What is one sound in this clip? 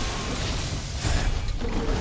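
Fire bursts with a loud, roaring blast.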